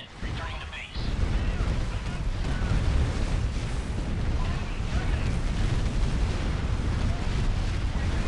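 Explosions boom and gunfire rattles in a battle.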